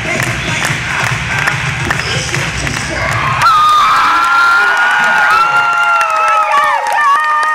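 A crowd cheers and screams loudly in a large echoing gym.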